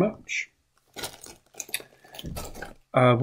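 Plastic packaging rustles and crinkles.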